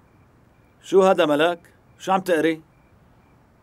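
A middle-aged man speaks with strain nearby.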